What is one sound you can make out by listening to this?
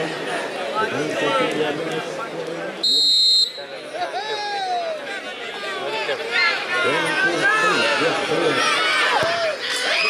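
A large outdoor crowd chatters and shouts excitedly.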